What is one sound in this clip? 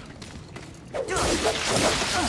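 A whip cracks and lashes.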